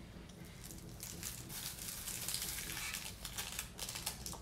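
A plastic bag rustles and crinkles as a hand rummages in it.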